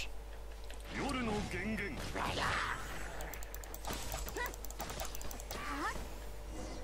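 Electric bolts crackle and zap in bursts.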